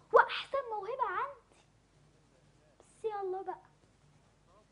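A young girl sings loudly and expressively.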